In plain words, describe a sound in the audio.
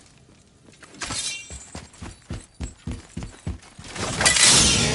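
Heavy footsteps thud on stone.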